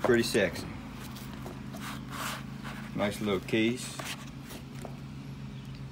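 A folding knife rustles as it is pulled from a padded zip case.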